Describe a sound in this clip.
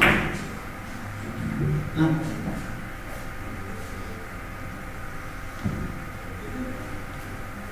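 Billiard balls click against each other on a table.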